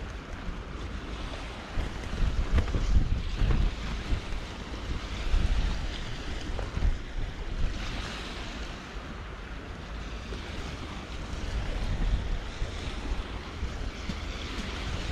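Small waves lap gently at a stony shore.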